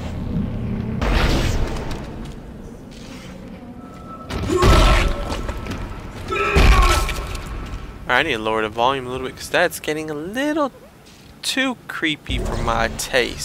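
A heavy weapon fires with loud, booming blasts.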